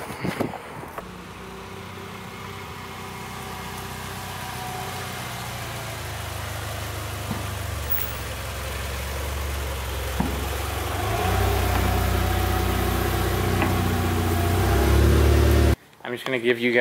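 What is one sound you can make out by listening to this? A car engine rumbles, growing louder as the car drives slowly closer and passes by.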